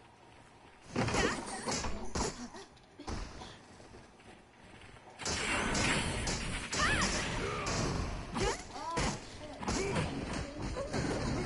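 Game sword strikes clash and whoosh.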